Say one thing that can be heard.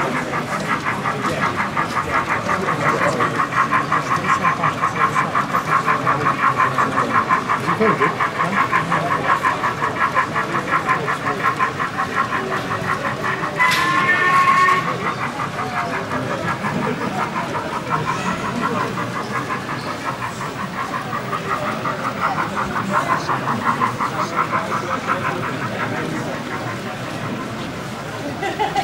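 A model train clatters steadily along its track with a fast, rhythmic chatter.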